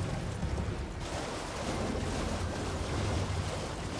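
Hooves splash through shallow water.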